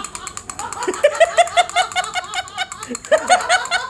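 Toy drumsticks tap a small drum.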